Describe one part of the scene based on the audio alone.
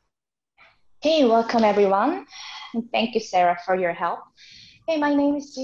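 Another young woman speaks calmly and clearly over an online call.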